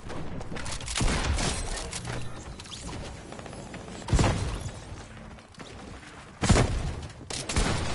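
Gunshots crack in short, loud bursts.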